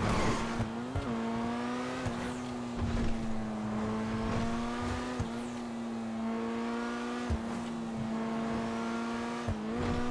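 Car tyres thump over bumps in the road.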